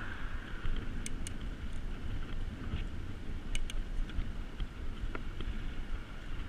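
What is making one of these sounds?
A bicycle chain and frame rattle and click.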